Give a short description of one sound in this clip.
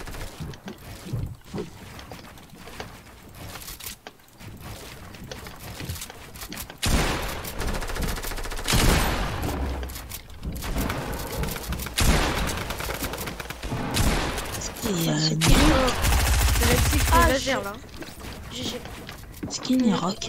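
Wooden walls clatter and knock as they are built in quick succession.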